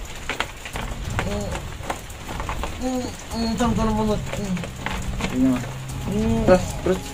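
Insects rustle and patter as they are poured out of a plastic tub.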